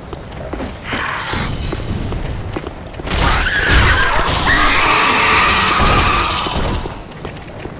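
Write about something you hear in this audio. Metal weapons clash and strike in a short, loud fight.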